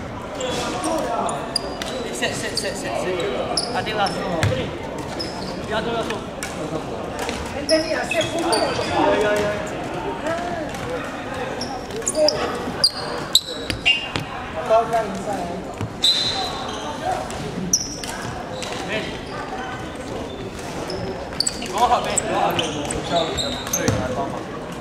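Young players call out and talk in a large echoing hall.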